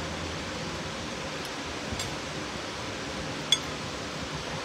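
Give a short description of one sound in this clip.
A spoon scrapes in a paper cup.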